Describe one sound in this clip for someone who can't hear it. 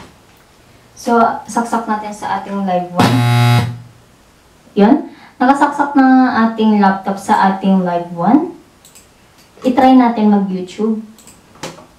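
A young woman speaks close into a microphone.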